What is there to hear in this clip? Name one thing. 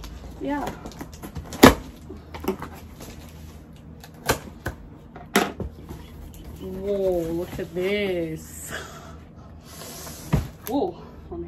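Cardboard rustles and thumps as a box is opened.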